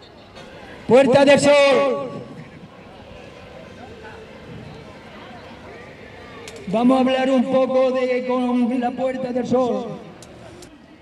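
An elderly man speaks loudly into a microphone through a loudspeaker, outdoors.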